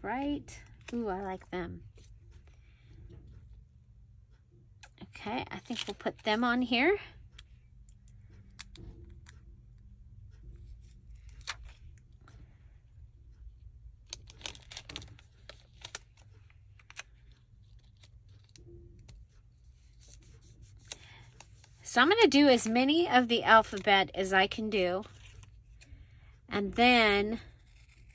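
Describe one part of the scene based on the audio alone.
Paper rustles and crinkles between fingers.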